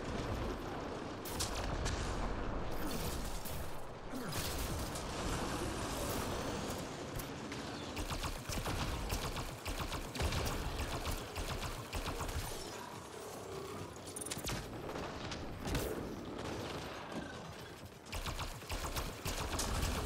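Rapid gunfire crackles and bangs in bursts.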